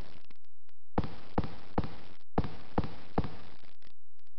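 Footsteps run on a hard floor.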